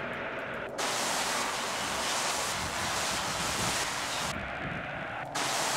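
A radio hisses with loud static that cuts in and out.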